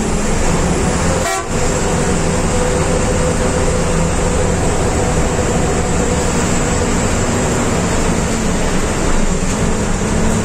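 A truck engine rumbles loudly and steadily close by.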